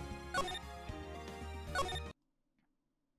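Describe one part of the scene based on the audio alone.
Game music plays with a bright melody and then cuts off.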